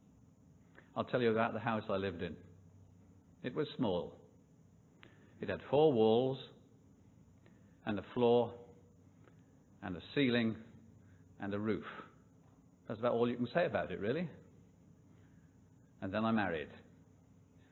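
An elderly man speaks calmly and deliberately into a microphone, with pauses between phrases.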